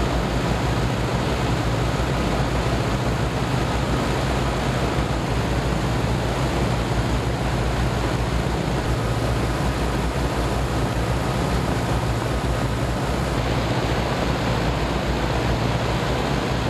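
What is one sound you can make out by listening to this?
Several propeller engines roar steadily at close range.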